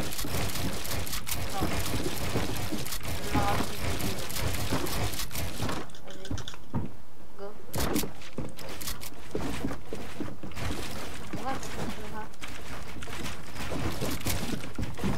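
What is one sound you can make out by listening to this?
Building pieces in a video game thump and crack in quick succession.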